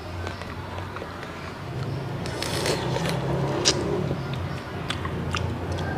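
A person chews food wetly and crunchily close to a microphone.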